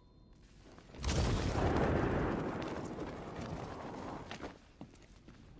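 Air rushes loudly past a gliding figure and slowly fades.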